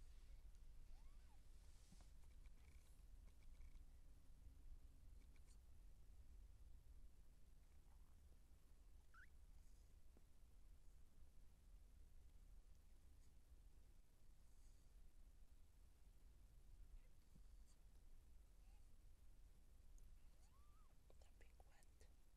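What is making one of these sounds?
Newborn kittens squeak faintly.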